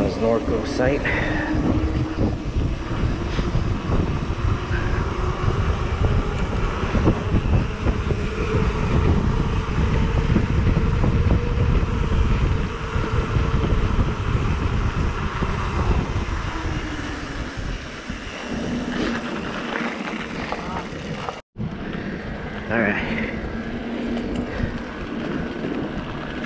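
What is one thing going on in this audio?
A bicycle motor whines steadily.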